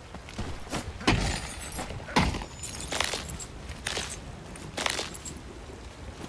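A pickaxe strikes rock with sharp, ringing hits.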